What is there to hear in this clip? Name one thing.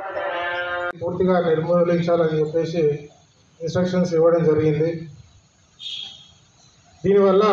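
A man speaks steadily into a microphone, heard through a loudspeaker.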